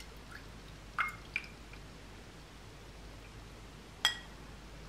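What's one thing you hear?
A small metal pan clinks lightly against a metal strainer.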